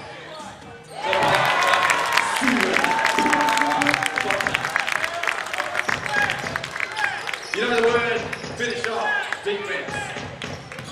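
A crowd cheers and claps loudly in an echoing hall.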